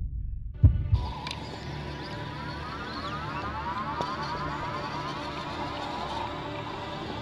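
A small electric motor whines steadily as a toy truck climbs.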